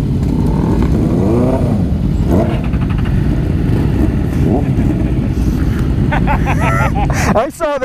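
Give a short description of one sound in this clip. Motorcycle engines rumble and idle nearby.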